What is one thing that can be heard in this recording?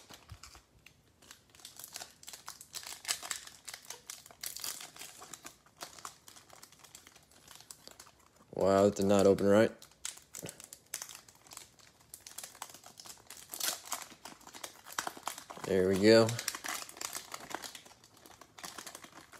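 Foil wrappers crinkle and rustle as they are handled.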